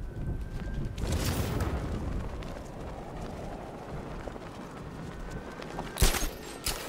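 Wind rushes loudly past during a fast glide through the air.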